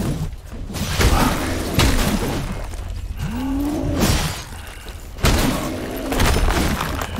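A monster growls and groans.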